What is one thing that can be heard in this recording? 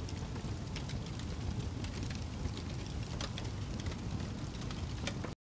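Logs crackle and pop in a burning fire.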